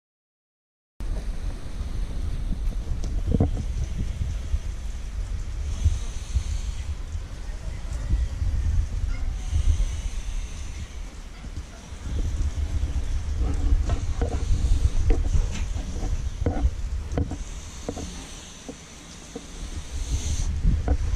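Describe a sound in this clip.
Paddles scrape and clank inside a metal drum.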